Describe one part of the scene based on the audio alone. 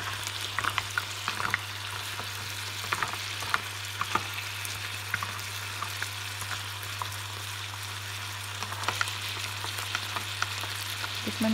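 A wooden spatula clacks against mussel shells and a pan.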